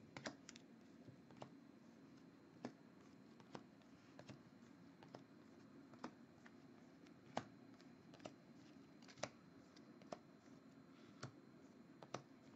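Trading cards flick and slap softly as they are shuffled one by one from a stack.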